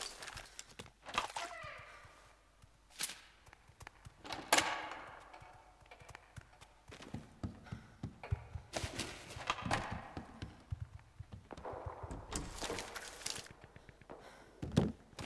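Footsteps thud on wooden floors and stairs.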